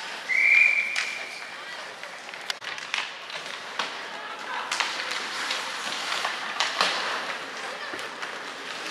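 Ice skates scrape and carve across a rink.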